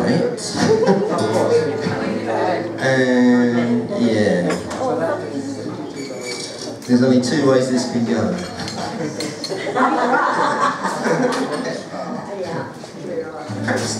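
An upright bass plucks a walking bass line.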